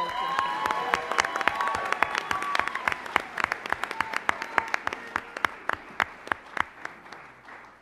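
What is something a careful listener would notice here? An audience claps and cheers in a large room.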